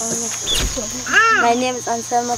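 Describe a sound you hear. A boy speaks with animation close by.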